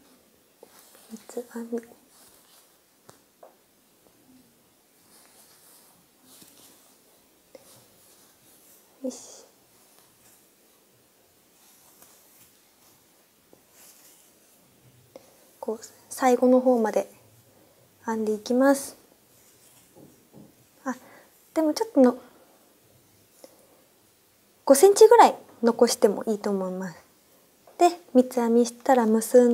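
A young woman speaks softly into a clip-on microphone, in short bursts.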